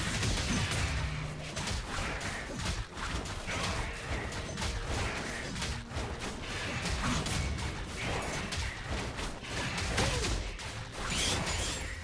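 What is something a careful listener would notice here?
Game combat impacts thud and clash repeatedly.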